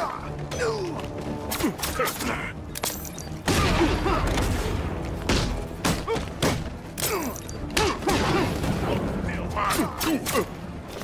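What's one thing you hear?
Men grunt and cry out as they are struck.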